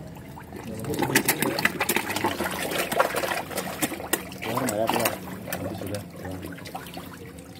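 Fish splash and thrash at the water's surface.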